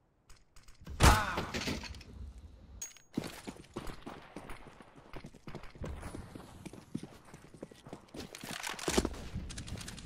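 A sniper rifle fires a loud, echoing shot.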